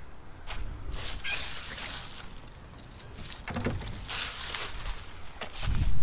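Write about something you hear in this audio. Loose cables rustle and scrape as they are handled.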